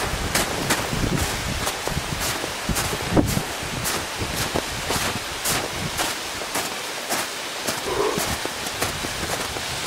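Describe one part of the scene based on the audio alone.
A waterfall rushes and splashes nearby.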